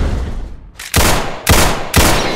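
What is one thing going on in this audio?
A pistol fires with a sharp bang.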